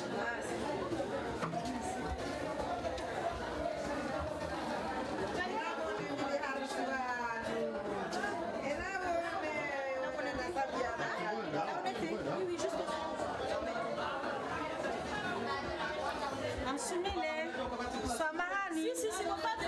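A woman talks with animation, close by.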